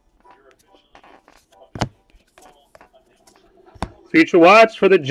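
Trading cards are shuffled in the hands.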